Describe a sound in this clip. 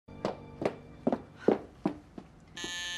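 Footsteps thump rhythmically on a wooden floor.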